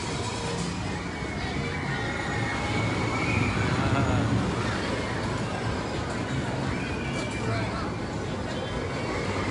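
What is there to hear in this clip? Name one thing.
A roller coaster rumbles along its wooden track.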